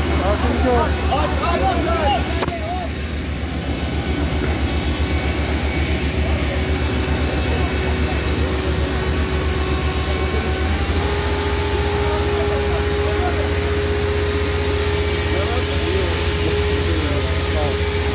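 A water cannon jet sprays and hisses.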